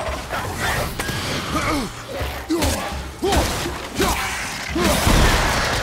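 Heavy blows strike and thud in a fight.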